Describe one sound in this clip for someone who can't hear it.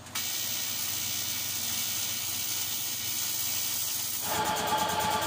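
An electric welder crackles and hisses steadily.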